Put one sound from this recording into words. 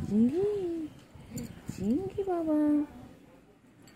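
A cat meows loudly nearby.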